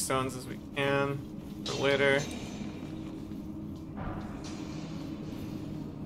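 Footsteps tread softly on dirt.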